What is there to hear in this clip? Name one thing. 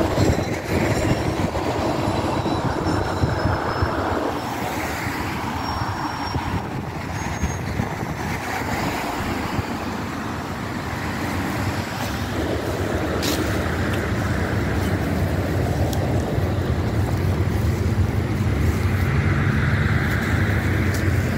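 Wind gusts roughly across the microphone outdoors.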